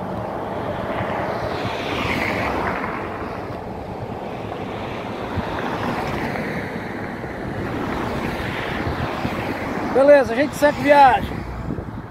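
Cars and trucks rush past on a nearby road.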